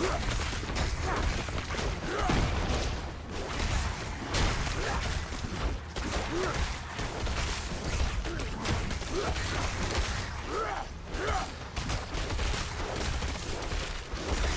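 Weapons clash and strike against monsters in a fast, noisy fight.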